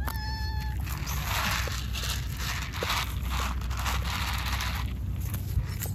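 Dry cat food rattles in a plastic tray.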